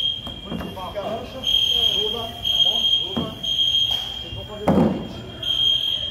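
A plastic rescue stretcher knocks against a tiled floor.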